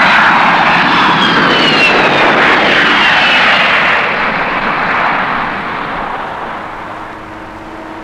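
A jet engine roars loudly with a high whine as an airliner takes off, then fades away.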